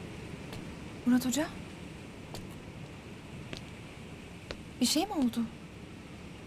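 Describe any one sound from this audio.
A young woman speaks briefly and tensely nearby.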